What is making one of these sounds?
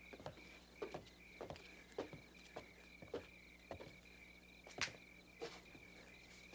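Footsteps thud on wooden steps.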